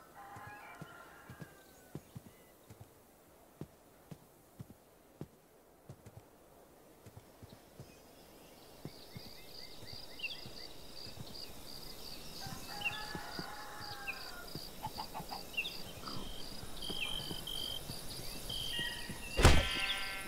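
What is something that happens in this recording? Footsteps tread softly on grass at a steady walking pace.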